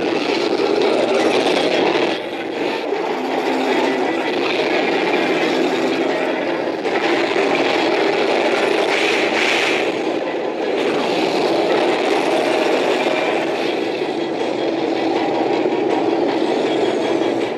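A giant monster roars.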